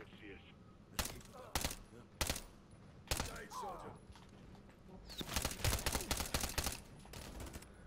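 A submachine gun fires short bursts in an echoing tunnel.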